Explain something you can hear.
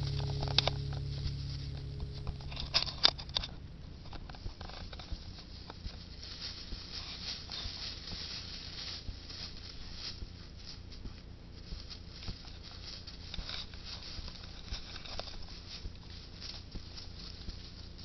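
Dogs rustle through dry leaves on the forest floor.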